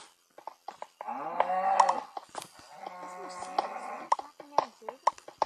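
A cow moos loudly.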